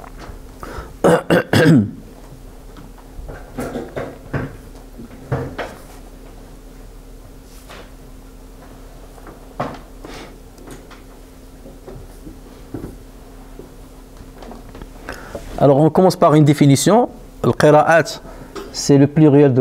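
A man speaks calmly and close by, with long pauses.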